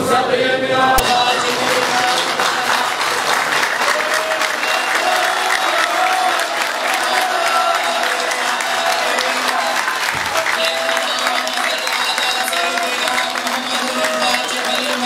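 A large crowd chants together.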